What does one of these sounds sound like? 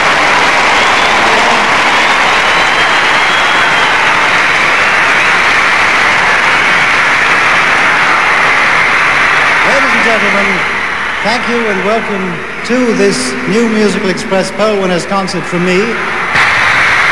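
A large crowd screams and cheers loudly in a big hall.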